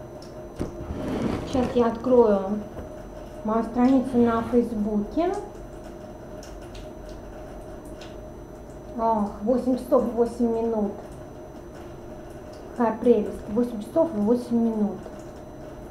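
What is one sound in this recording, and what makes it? A woman speaks calmly, close to the microphone.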